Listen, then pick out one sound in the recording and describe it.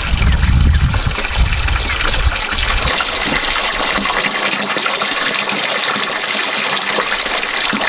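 A knife slices through a firm root.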